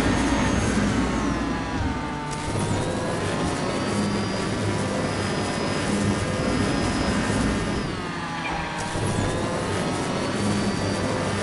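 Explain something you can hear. Racing car engines whine and roar steadily, rising and falling in pitch.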